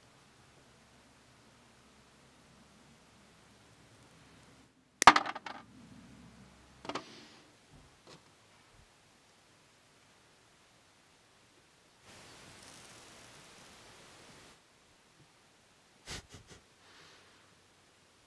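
Snips cut through soft metal with sharp clicks.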